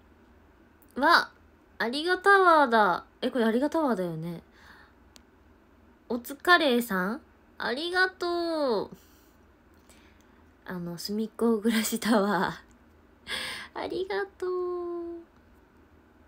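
A young woman talks with animation, close to the microphone.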